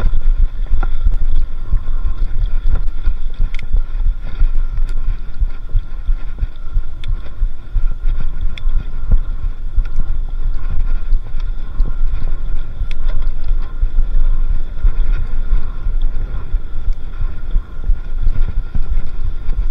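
Bicycle tyres crunch and rattle over a rough dirt track.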